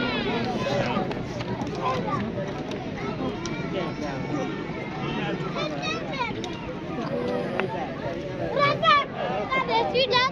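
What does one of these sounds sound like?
A crowd of spectators chatters and calls out nearby.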